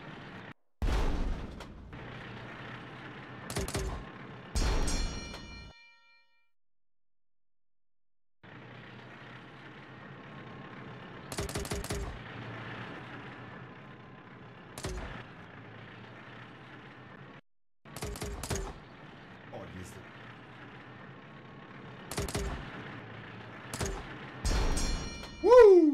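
Cannon shots from a video game boom in short bursts.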